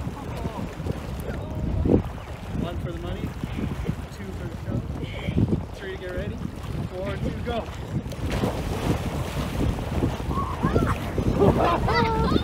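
Water splashes as a young man wades and swims.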